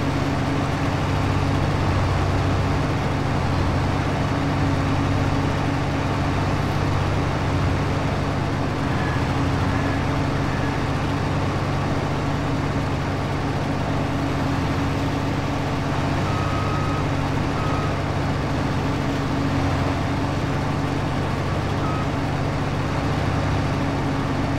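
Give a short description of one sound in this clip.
A heavy harvester engine drones steadily.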